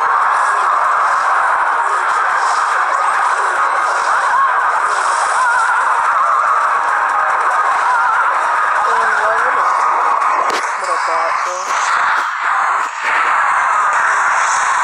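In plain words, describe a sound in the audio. A swarm of small game figures clatters and clashes in battle.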